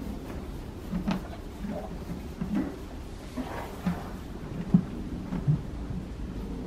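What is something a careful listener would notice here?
A horse's muzzle knocks against a metal bucket.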